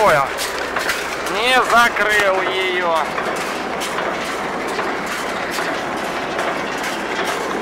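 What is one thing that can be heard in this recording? A baler machine runs with a steady rattling whir.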